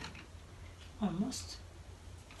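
A woman speaks briefly nearby.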